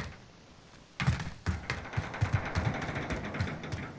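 Footsteps clank quickly on a metal grating floor.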